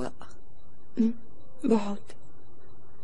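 A woman answers briefly.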